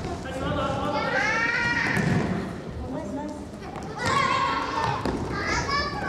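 A ball thuds against a wooden floor.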